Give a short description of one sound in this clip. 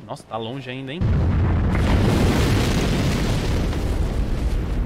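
A snowstorm wind roars steadily.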